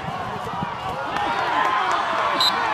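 A crowd cheers louder and louder.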